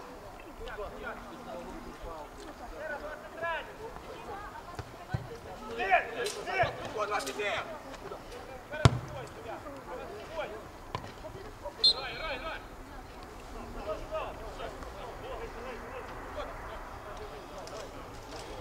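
Men shout to each other outdoors across an open field.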